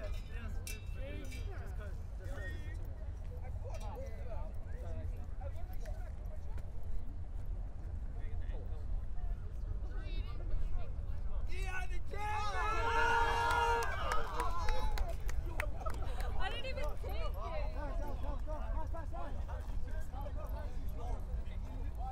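A group of men talk and call out nearby outdoors.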